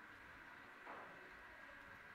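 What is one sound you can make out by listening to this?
Pool balls click against each other on a table.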